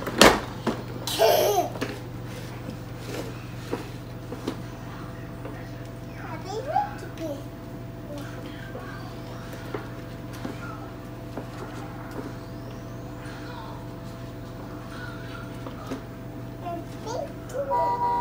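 A toddler squeals and babbles happily.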